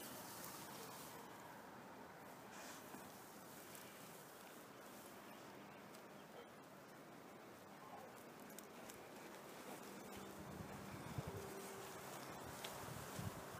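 A dog's paws patter softly on dry grass.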